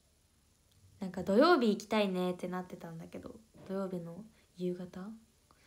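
A young woman speaks close to the microphone in a light, animated voice.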